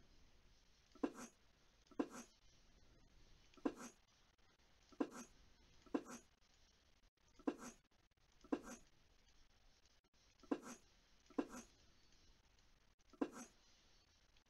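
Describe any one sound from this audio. Pieces click sharply into place, one at a time, at a steady pace.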